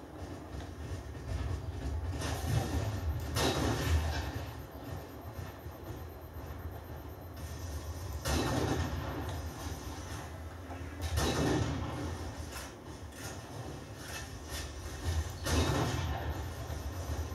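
Game sound effects with explosions and gunfire play from a television speaker.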